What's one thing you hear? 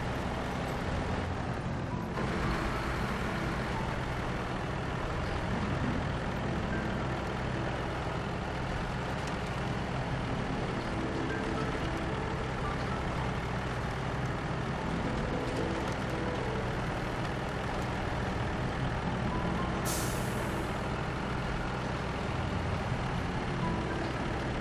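Truck tyres crunch through snow and water.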